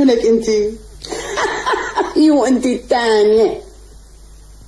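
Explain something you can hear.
A woman laughs heartily.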